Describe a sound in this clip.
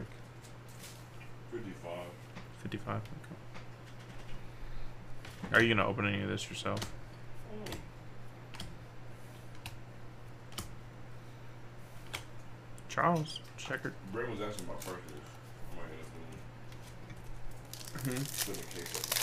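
Trading cards flick and shuffle in hands.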